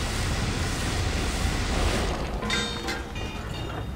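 A heavy metal panel clatters down.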